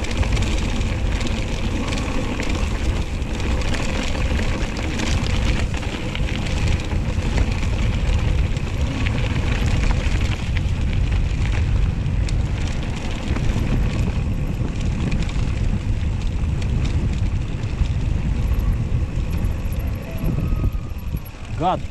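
Wind buffets loudly, outdoors.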